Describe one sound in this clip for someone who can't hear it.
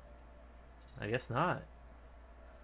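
A game menu makes short electronic chimes.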